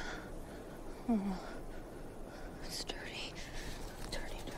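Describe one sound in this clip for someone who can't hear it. A young woman mutters in distress.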